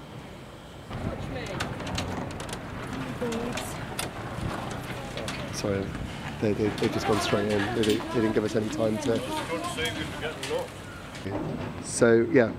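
Several adults talk together nearby.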